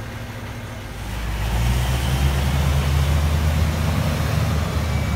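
A heavy truck's engine roars louder as the truck drives past.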